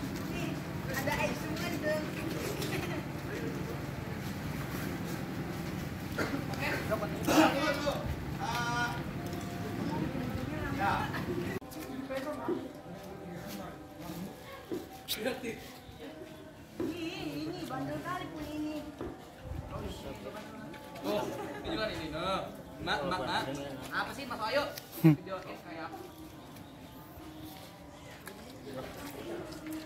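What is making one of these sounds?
A small crowd of young people chatters in the background.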